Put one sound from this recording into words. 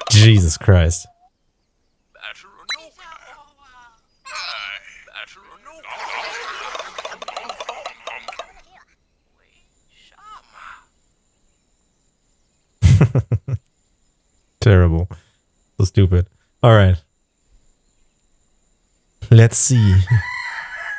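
A man speaks with animation into a close microphone, in short bursts.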